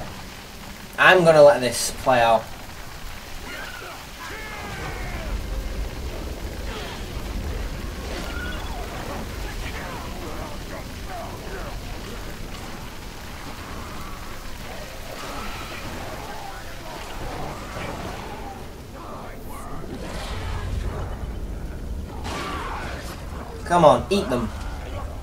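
A young man shouts out loudly into a microphone.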